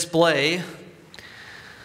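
A man speaks briefly into a microphone in an echoing hall.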